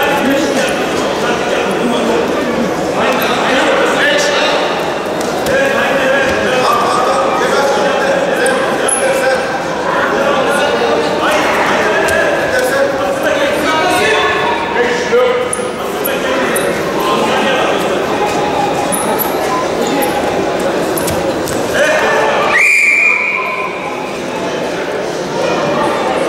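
A large crowd chatters and shouts in an echoing hall.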